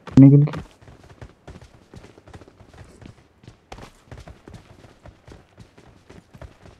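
Footsteps of a running game character thud in a quick rhythm.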